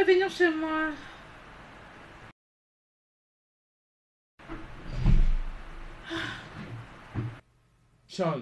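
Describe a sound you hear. A woman speaks emotionally close by.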